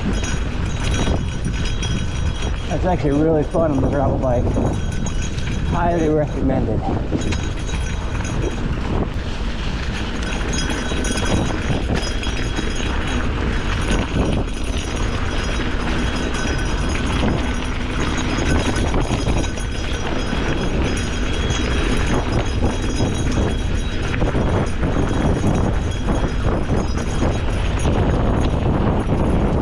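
Bicycle tyres crunch and rattle over a rough dirt track.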